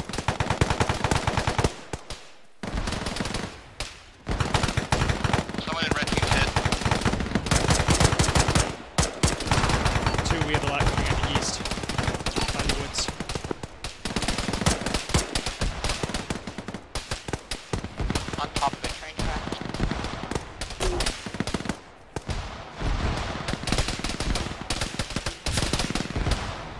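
Rapid rifle gunfire rattles in bursts, outdoors.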